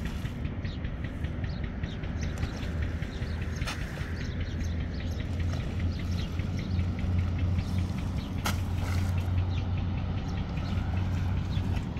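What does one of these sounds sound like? A man wades through shallow water, splashing with each step.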